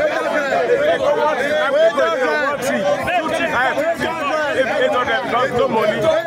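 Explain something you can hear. A second middle-aged man speaks forcefully up close.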